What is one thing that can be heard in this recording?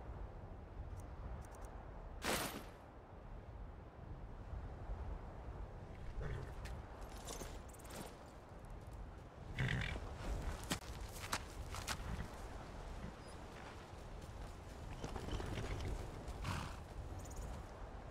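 Hooves thud on rocky ground as a horse walks.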